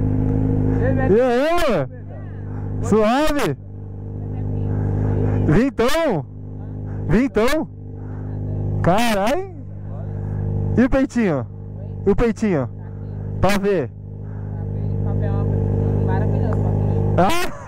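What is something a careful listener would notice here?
A motorcycle engine revs sharply again and again.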